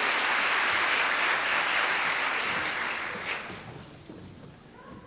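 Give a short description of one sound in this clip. An audience applauds in a large hall, and the applause fades away.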